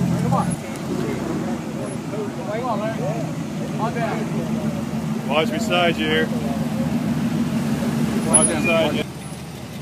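An old car engine rumbles nearby at low speed.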